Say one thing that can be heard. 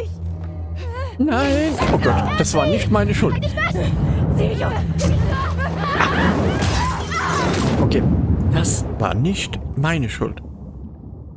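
A young woman screams in fear.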